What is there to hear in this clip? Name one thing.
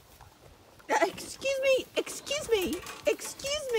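A small dog yelps and whines excitedly.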